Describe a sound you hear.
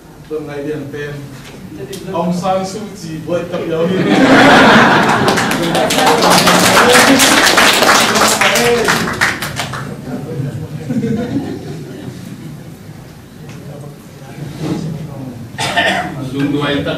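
Men and women murmur and chat among themselves.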